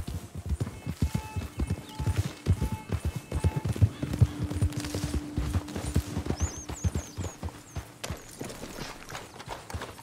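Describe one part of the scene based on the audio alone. Horse hooves thud rhythmically on grass at a gallop.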